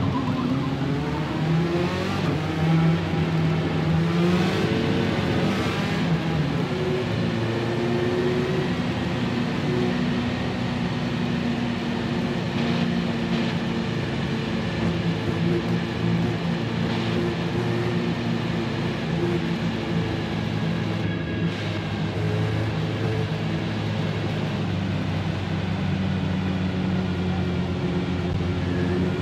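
A race car engine roars steadily at high revs, shifting gears as it speeds up.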